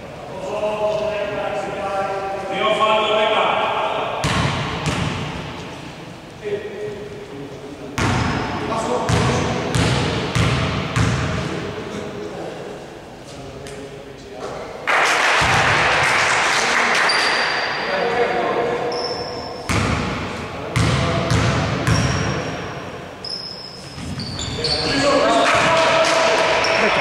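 A basketball bounces on a wooden court in an echoing gym.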